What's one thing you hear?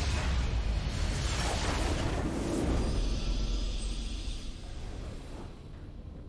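A deep magical explosion booms and rumbles, then slowly fades.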